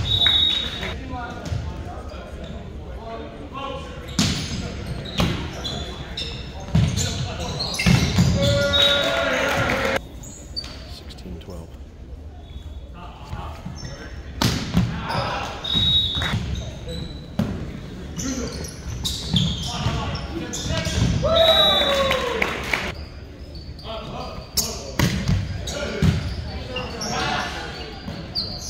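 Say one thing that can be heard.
A volleyball is struck with sharp slaps in an echoing hall.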